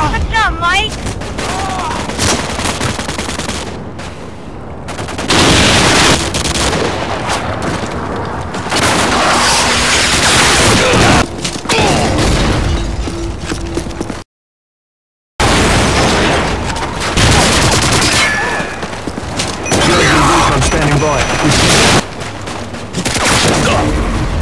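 Gunshots and explosions boom from a video game.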